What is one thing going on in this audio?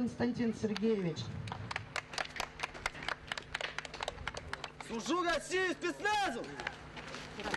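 A crowd claps hands outdoors.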